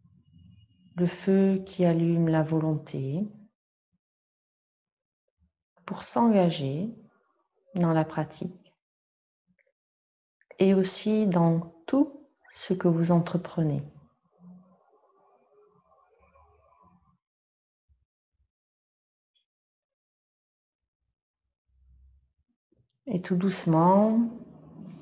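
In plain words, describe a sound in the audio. A middle-aged woman speaks calmly and slowly into a close microphone, with long pauses.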